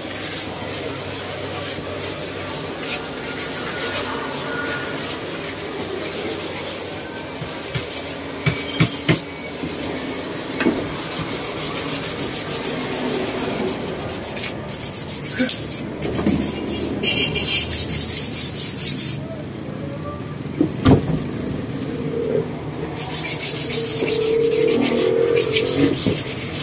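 Rattan creaks and rubs as a man works it with his hands.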